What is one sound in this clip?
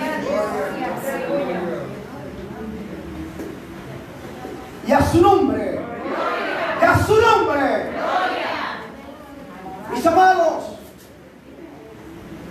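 An elderly man speaks with emphasis into a microphone in an echoing hall.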